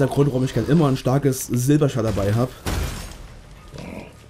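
A large creature growls and snarls.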